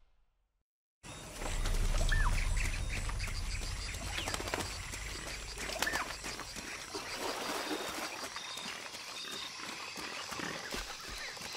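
Footsteps run over soft forest ground.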